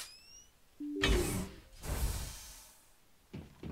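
A heavy metal door slides open with a hiss.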